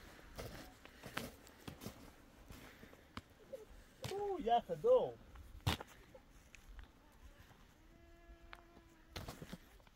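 Footsteps crunch on crusted snow.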